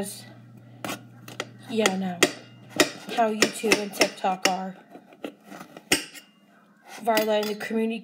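A knife pokes and cuts into a bell pepper.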